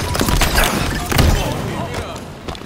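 An explosion bursts with a loud, deep boom.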